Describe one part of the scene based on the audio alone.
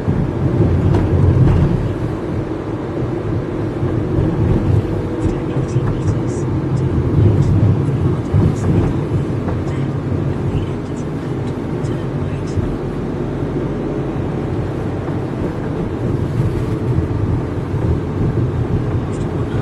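A car engine hums steadily while driving along a road.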